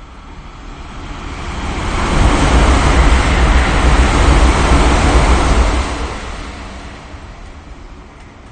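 A passing train roars by close alongside, then fades.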